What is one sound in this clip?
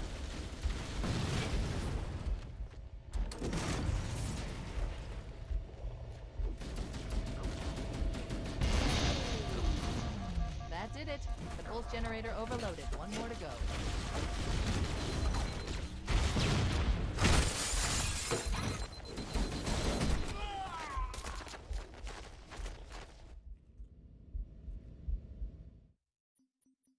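Gunfire blasts in quick bursts.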